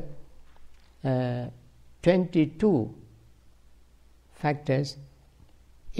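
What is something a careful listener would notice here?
An elderly man speaks in short phrases close by.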